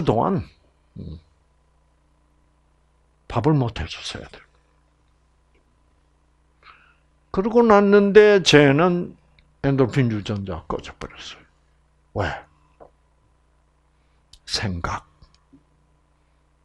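An elderly man speaks in bursts with pauses, close to a microphone.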